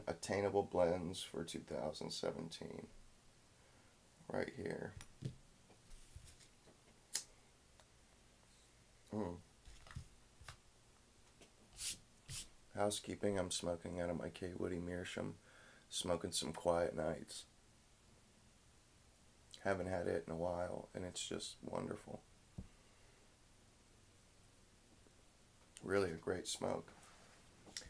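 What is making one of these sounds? A young man talks calmly and close by, in bursts with pauses.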